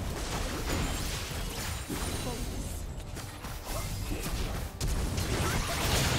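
Video game spell effects and attacks crackle and burst in a busy battle.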